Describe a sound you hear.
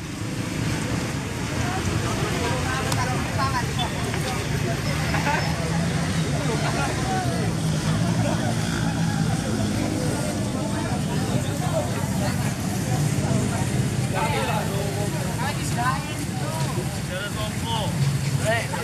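A crowd of young men and women chatter loudly nearby outdoors.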